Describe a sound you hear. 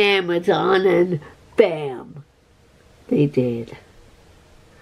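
An older woman speaks with animation close to the microphone.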